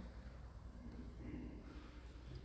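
A middle-aged woman begins reading aloud through a microphone in an echoing hall.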